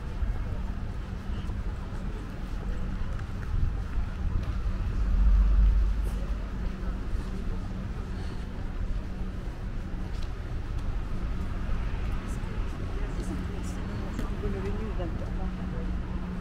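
A car drives slowly along a street nearby.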